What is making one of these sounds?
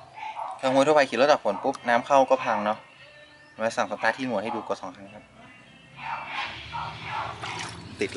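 Water sloshes and splashes as a hand stirs it.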